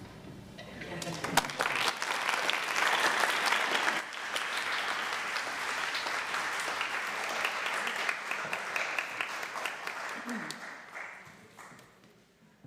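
An audience applauds loudly in a large, echoing hall, then the clapping fades away.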